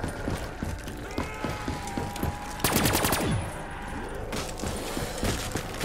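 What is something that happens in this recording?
A video game ray gun fires rapid sci-fi energy bursts.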